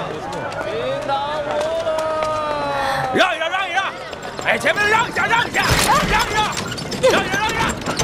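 A woman shouts loudly.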